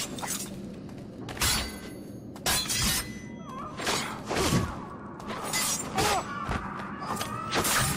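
Blows land hard in a scuffle.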